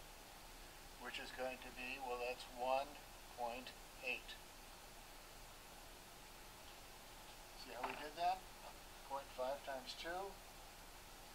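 An older man speaks calmly in short bursts, with pauses.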